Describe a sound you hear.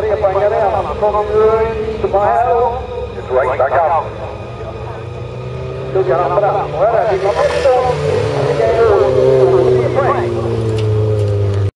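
A race car engine revs hard and roars, rising and falling in pitch.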